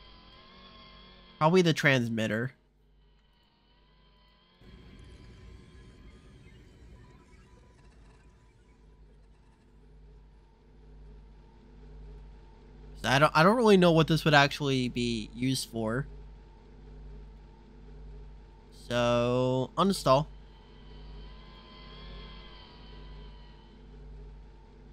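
A low electronic hum drones steadily.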